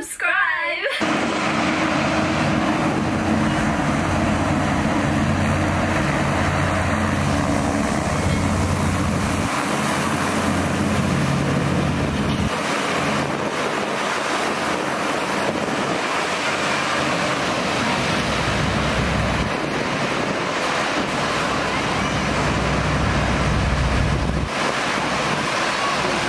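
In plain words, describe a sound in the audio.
A hovercraft roars loudly as it moves past.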